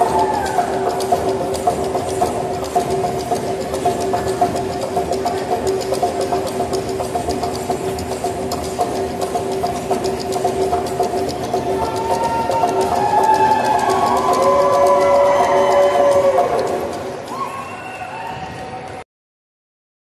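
Bamboo poles clack together in a quick, steady rhythm.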